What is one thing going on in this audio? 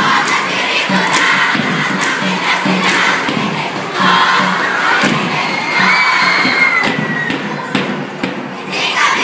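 A large crowd of young people cheers and chatters in a big echoing space.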